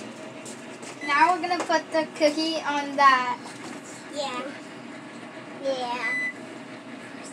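A young girl speaks excitedly close by.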